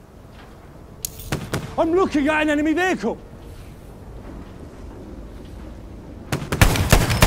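A heavy machine gun fires in loud bursts.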